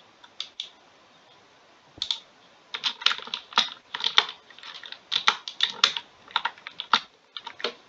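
A block breaks with a crunch.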